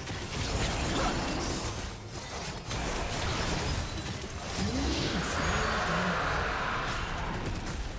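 Spell effects whoosh and crackle in a video game fight.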